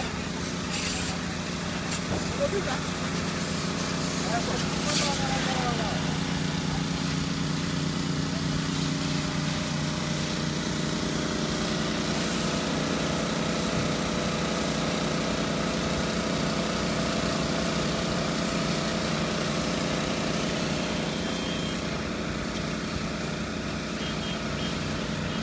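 A pressure washer motor hums steadily.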